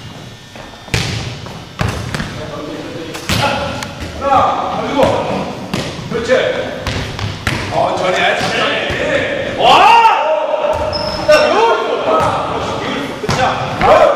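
A ball thuds as it is kicked and bounces, echoing in a large hall.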